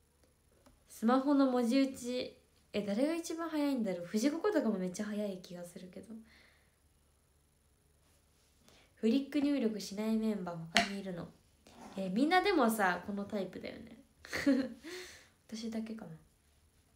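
A young woman talks calmly and close by, with pauses.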